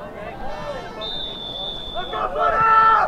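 A referee's whistle blows one long steady note.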